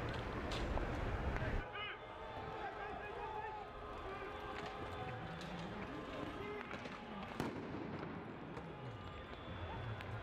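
A crowd of young men shouts outdoors.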